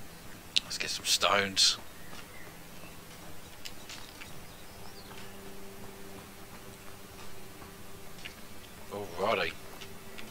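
Footsteps tread on stone paving.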